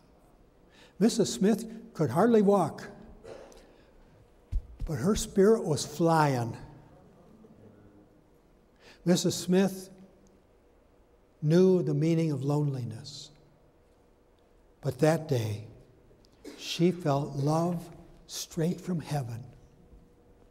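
An older man preaches with animation through a microphone, pausing between phrases.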